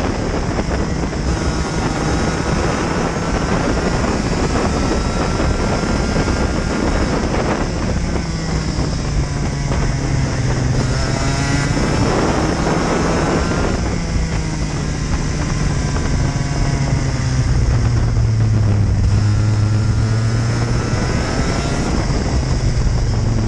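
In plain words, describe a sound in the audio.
A kart engine roars up close, rising and falling in pitch as it speeds up and slows down.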